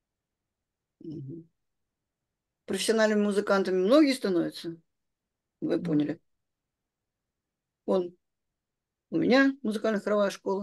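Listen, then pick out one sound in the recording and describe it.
An elderly woman speaks calmly over an online call, in short bursts with pauses.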